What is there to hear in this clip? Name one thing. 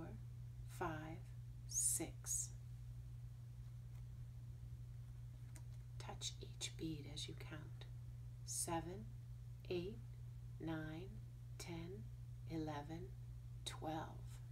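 A woman speaks calmly and slowly, close by.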